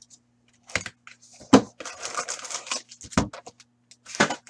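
Cardboard packaging rustles and scrapes as it is handled.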